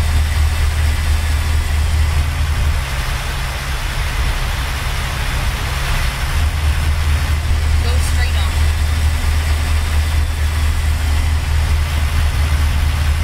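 Tyres roll on a highway with a steady rushing noise.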